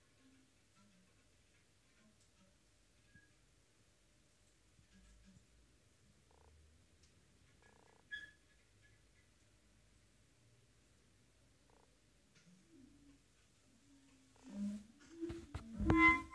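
A clarinet plays sparse, quiet notes, growing louder at the end.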